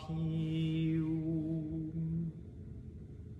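A man sings long, steady notes close by.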